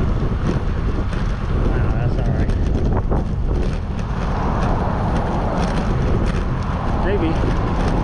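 Tyres hum steadily on a paved path.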